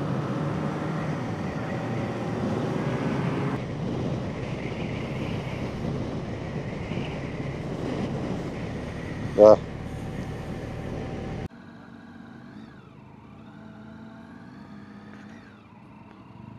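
A motorcycle engine hums and revs while riding.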